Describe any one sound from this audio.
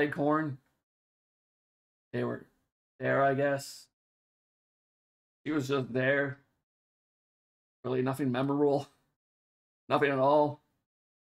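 A man talks calmly in short bursts into a close microphone.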